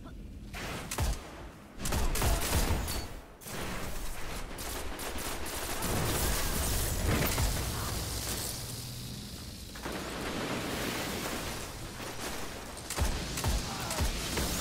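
Rifle shots crack and boom, one after another.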